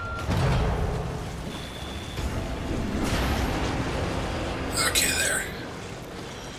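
Water sloshes as someone wades through it.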